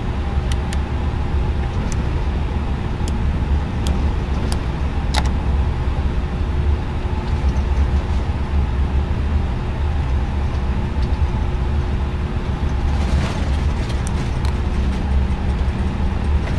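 Jet engines hum steadily with a low rumble.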